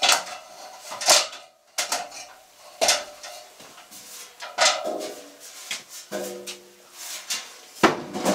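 A hollow metal casing knocks and bumps as it is handled.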